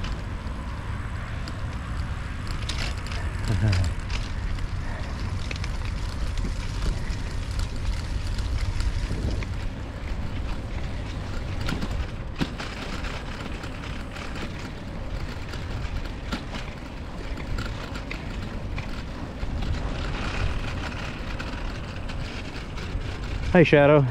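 Bicycle tyres roll over a paved path.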